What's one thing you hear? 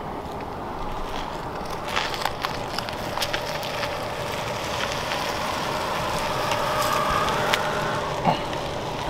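A car rolls slowly over pavement with a soft, low hum.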